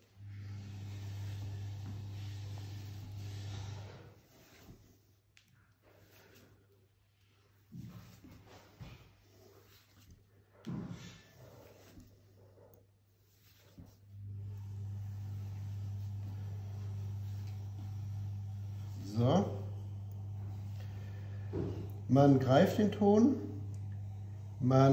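Wet clay thuds and squelches softly as hands knead it on a slab.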